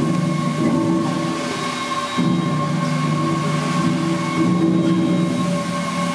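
A large steam engine runs with a steady rhythmic chugging and clanking.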